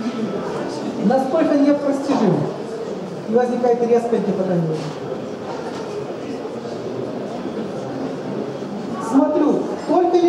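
A man speaks calmly and explains nearby.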